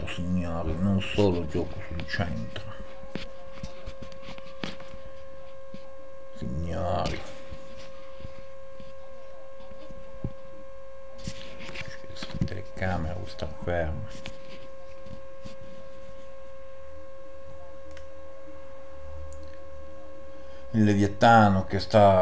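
A middle-aged man talks casually into a close microphone, in short bursts with pauses.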